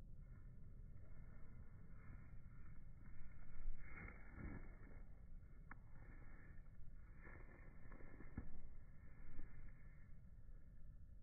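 A football thuds softly as it is kicked on grass.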